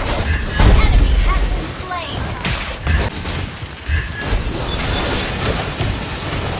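Blasts and magical zaps from a video game battle burst out in quick succession.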